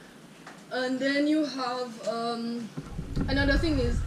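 A second young woman speaks calmly close by.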